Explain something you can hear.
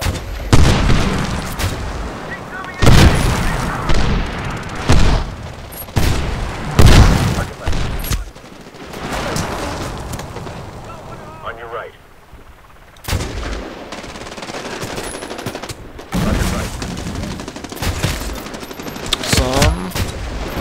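Sniper rifle shots boom loudly, one at a time.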